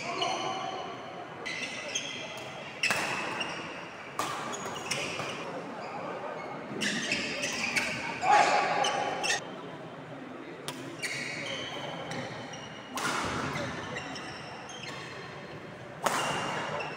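Rackets strike a shuttlecock again and again in an echoing hall.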